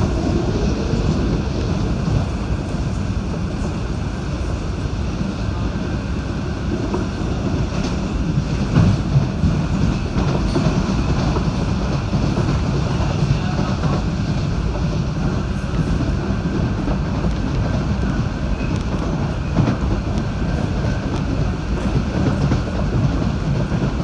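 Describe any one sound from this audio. A train rumbles steadily along the tracks from inside the carriage.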